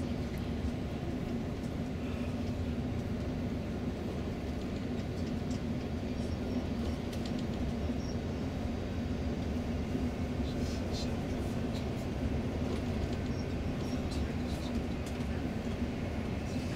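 Tyres roar on the motorway.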